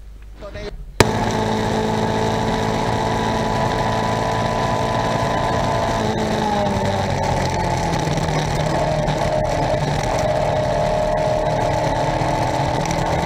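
A racing car engine roars steadily from inside the car.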